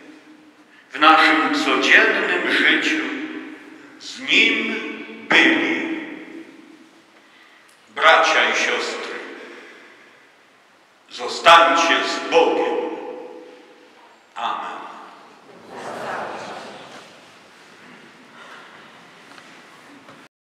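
A man sings a chant into a microphone, in phrases that ring out in a large echoing hall.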